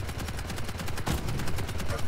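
A gun fires rapid shots.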